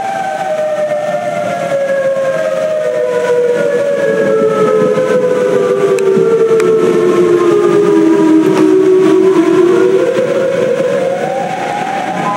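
Rain patters steadily on a window pane.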